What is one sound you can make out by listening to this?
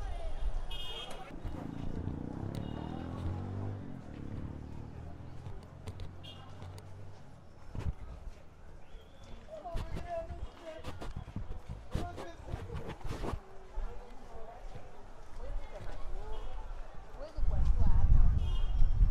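Street traffic rumbles nearby.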